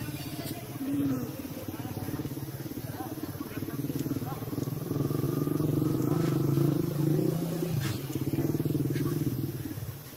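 A baby monkey squeaks softly nearby.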